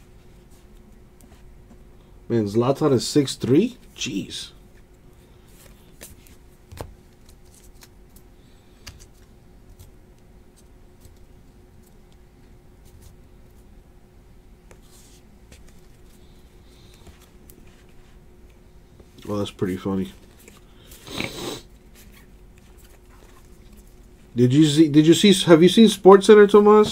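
Trading cards rustle and slide as they are flipped through by hand.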